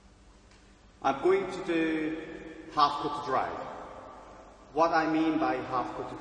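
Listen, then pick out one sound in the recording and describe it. A man speaks calmly to the listener in a room with a slight echo.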